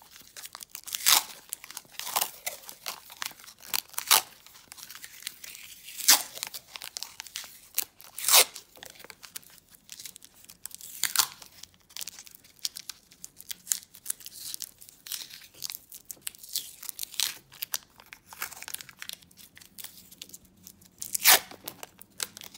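Masking tape rips as it is pulled off the roll.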